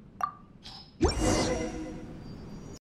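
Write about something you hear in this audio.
A bright magical chime rings out and slowly fades.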